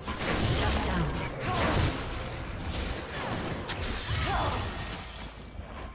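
Weapons clash and strike during a fight.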